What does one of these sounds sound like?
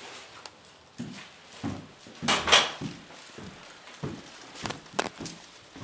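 Footsteps climb stairs indoors.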